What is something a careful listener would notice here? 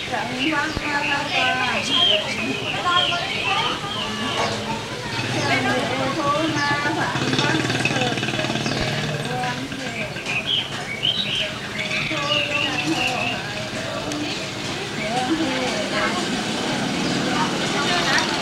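A man chants in a steady, rhythmic voice close by.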